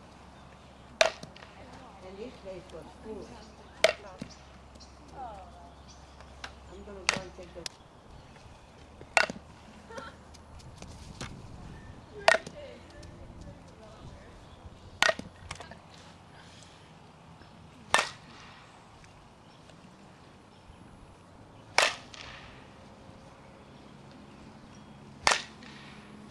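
A softball knocks sharply against a bat, again and again.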